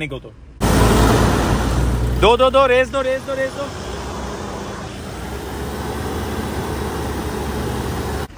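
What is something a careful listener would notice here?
An engine idles with a steady low rumble.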